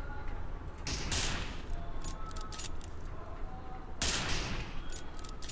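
A rifle fires two loud single shots.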